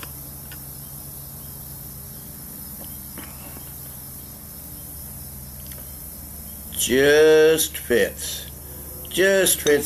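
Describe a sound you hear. Beer pours and fizzes into a glass.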